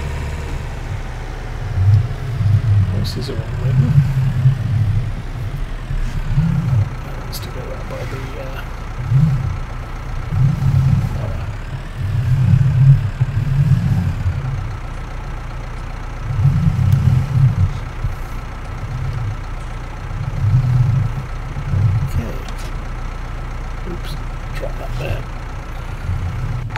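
A tractor engine hums, its pitch rising and falling as the tractor speeds up and slows down.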